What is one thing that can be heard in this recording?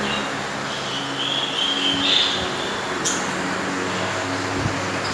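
Many small parakeets chirp and chatter nearby.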